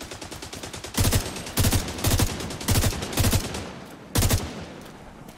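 A rifle fires several loud, rapid shots.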